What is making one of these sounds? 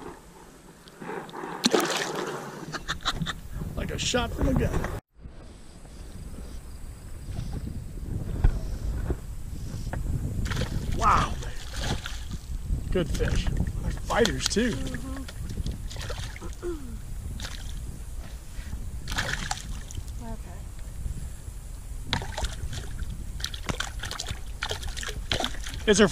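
A fish splashes and thrashes at the water's surface close by.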